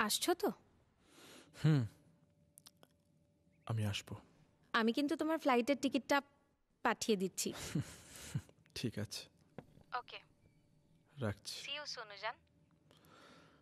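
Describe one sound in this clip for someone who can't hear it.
A young man talks calmly on a telephone.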